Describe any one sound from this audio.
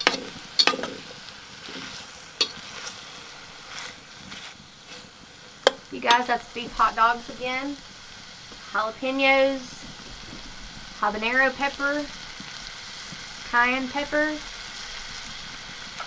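Food sizzles quietly in a pan.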